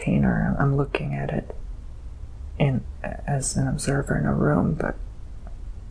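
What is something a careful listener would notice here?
A young man moans and sighs close by.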